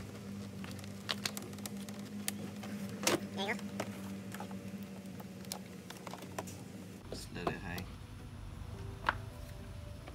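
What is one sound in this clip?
A plastic door panel clicks and snaps as it is pried loose.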